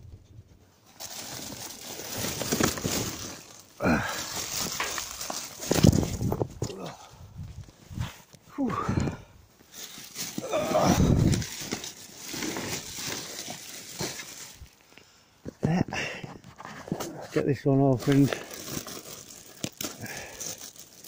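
A plastic bag rustles and crinkles as hands handle it.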